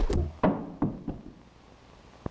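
Men scuffle with dull thumps and grunts.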